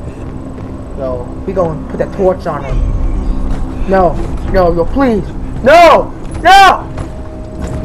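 A young man exclaims loudly and excitedly into a close microphone.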